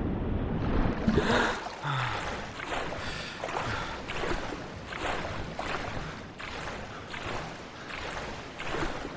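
Water splashes in quick strokes of swimming.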